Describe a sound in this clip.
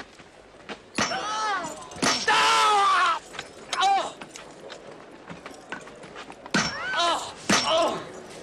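A hammer strikes iron nails into wood with sharp knocks.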